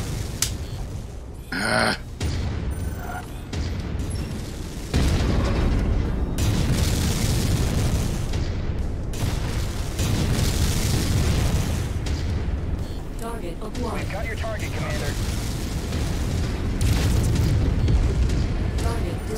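A heavy machine rumbles low and steadily.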